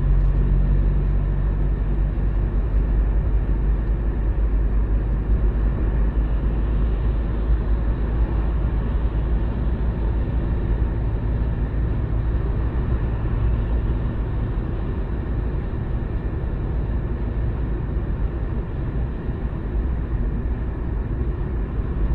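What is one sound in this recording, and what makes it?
A car's engine and tyres rumble steadily on a motorway from inside the car.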